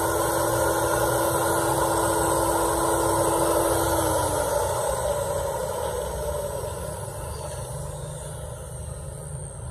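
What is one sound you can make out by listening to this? An electric angle grinder whirs loudly, then slowly winds down.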